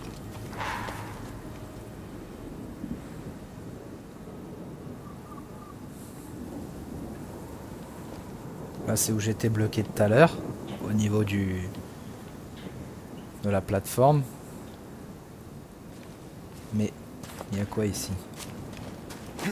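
Footsteps tread on grass and rock.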